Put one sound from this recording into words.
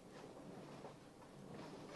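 An elderly woman speaks softly nearby.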